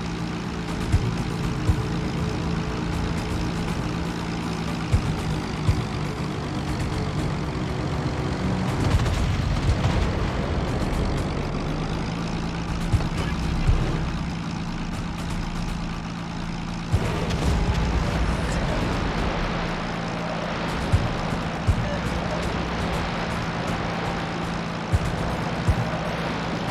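Anti-aircraft guns fire in sharp bursts.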